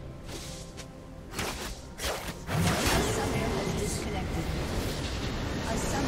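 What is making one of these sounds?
Game spell effects crackle and burst in a fight.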